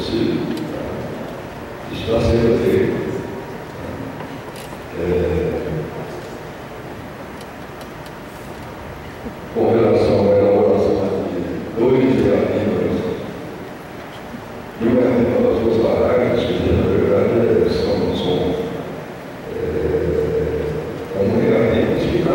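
A man speaks into a microphone, heard through loudspeakers in an echoing hall, pausing between phrases.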